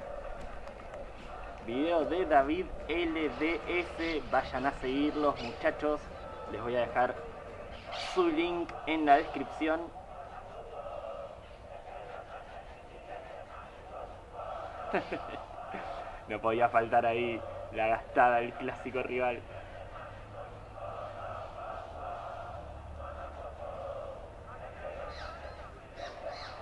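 A large crowd chants and sings loudly in an open stadium.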